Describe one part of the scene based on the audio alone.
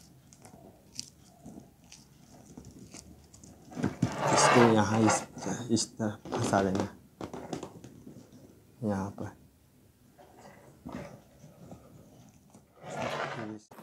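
A clear plastic balloon crinkles as it is handled.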